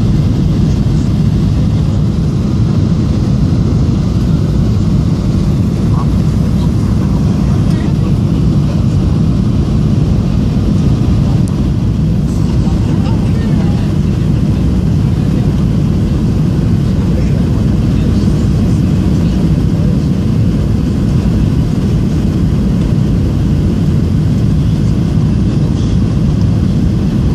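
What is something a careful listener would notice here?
Jet engines roar steadily inside an airplane cabin.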